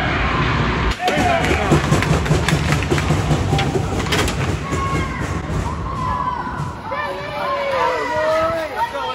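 Young boys shout and call out nearby.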